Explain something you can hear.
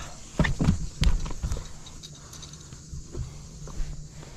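A fish flops and thumps against a boat deck.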